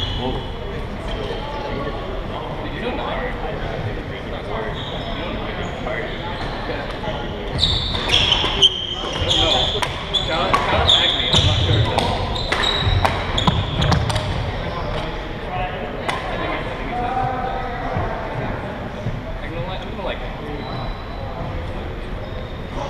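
Many voices chatter in a large echoing hall.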